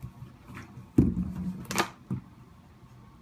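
A baby bangs a hand on a plastic seat.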